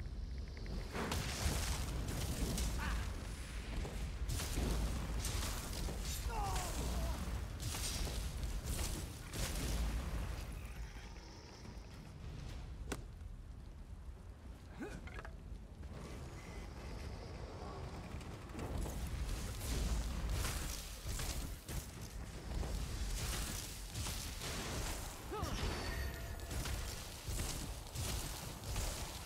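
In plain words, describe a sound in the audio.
Magic spells crackle and boom in quick bursts.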